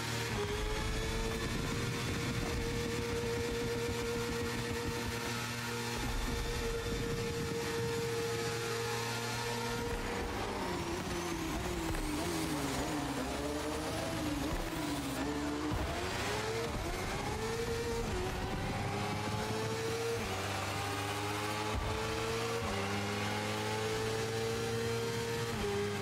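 A motorcycle engine roars at high revs, dropping in pitch as it brakes into a bend and rising again as it speeds up.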